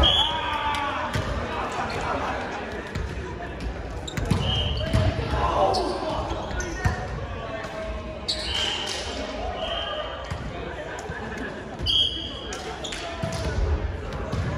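Volleyballs thump against hands and arms in a large echoing gym.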